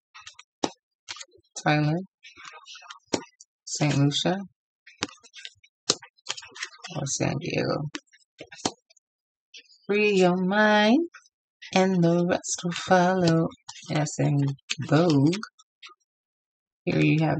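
Paper cards rustle and tap as a hand handles them.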